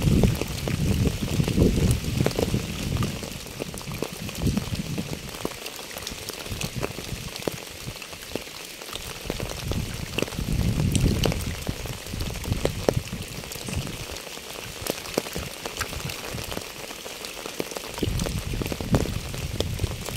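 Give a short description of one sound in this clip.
Raindrops patter steadily on a wet pavement and puddles.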